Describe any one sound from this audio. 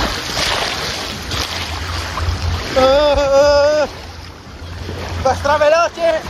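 Water rushes and splashes down a slide.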